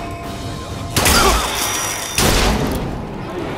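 A pistol fires loud gunshots.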